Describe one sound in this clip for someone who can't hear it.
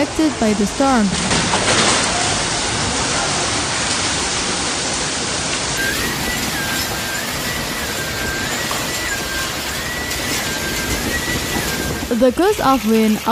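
Heavy rain and hail pour down hard.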